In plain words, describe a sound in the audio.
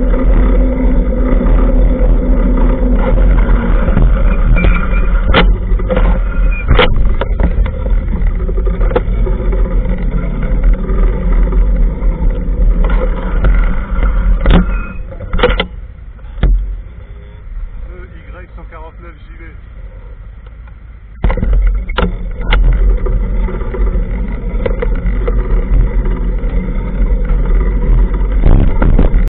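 A scooter engine hums as it rides along a street.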